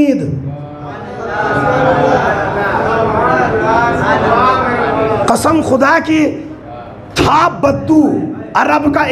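A man speaks with animation into a microphone, heard through loudspeakers.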